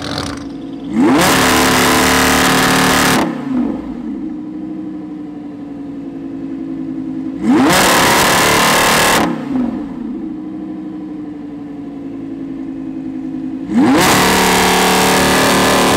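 A sports car engine revs hard in loud, rasping bursts.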